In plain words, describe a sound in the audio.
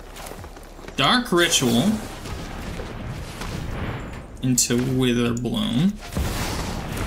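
Magical game sound effects chime and whoosh.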